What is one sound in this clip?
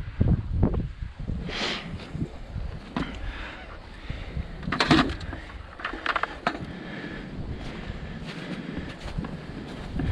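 A gloved hand scrapes and scoops loose sandy soil.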